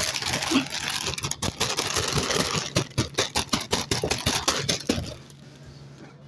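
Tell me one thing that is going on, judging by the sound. A plastic snack bag crinkles and rustles close by.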